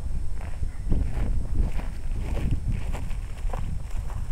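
Footsteps swish through grass outdoors.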